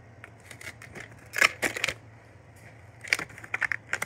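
A plastic case snaps open.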